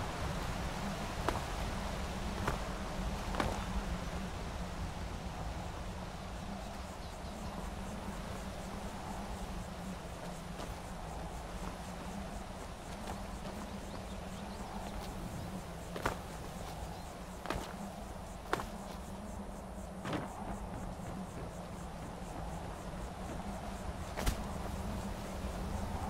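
Footsteps tread on stone and grass.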